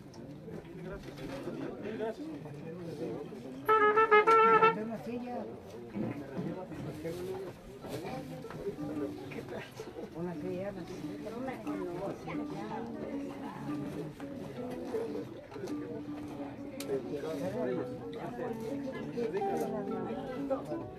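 A crowd of men and women murmurs and talks quietly outdoors.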